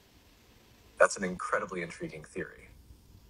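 A woman speaks briefly and calmly, heard through a recording.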